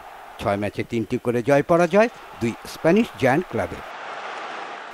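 A large stadium crowd murmurs and cheers in the distance.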